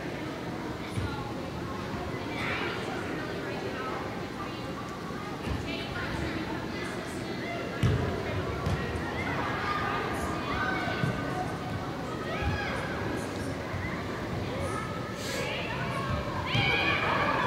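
A soccer ball thuds as it is kicked.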